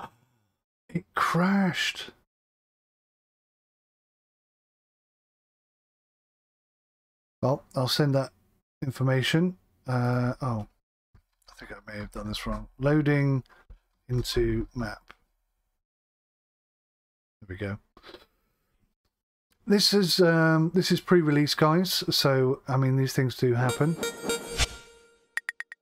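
A man talks calmly and close into a microphone, in short bursts with pauses.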